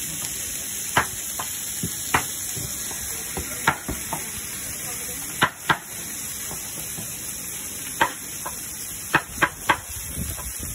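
A cleaver chops meat with sharp knocks.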